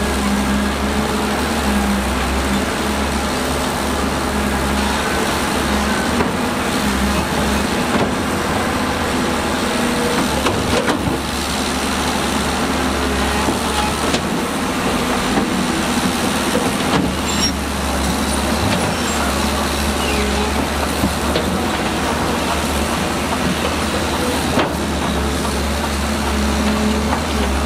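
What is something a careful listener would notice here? Rocks and dirt clatter as an excavator bucket scrapes and dumps them.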